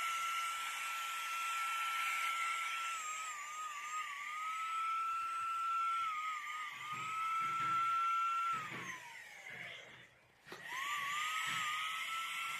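An electric paint sprayer whines steadily, its pitch dipping now and then, and briefly winds down before starting up again.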